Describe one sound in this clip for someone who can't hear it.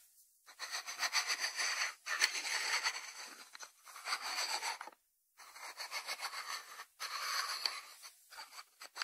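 A ceramic lid scrapes and grinds as it is twisted on its ceramic dish.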